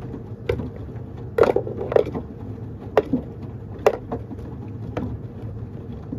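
Wet laundry tumbles and thumps inside a turning washing machine drum.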